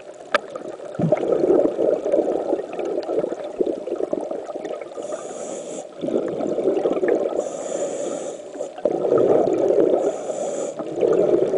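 Water rushes with a low, muffled underwater rumble.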